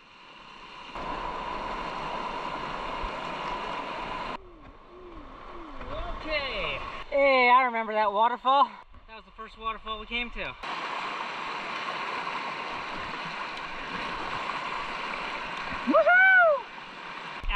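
Rushing river water roars steadily close by.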